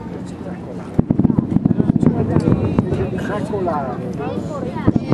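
Fireworks crackle rapidly far off.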